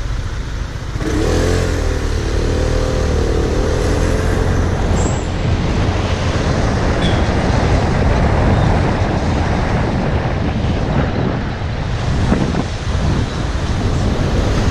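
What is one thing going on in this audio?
Wind rushes past in a steady roar.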